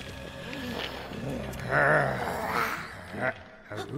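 Creatures growl and snarl loudly.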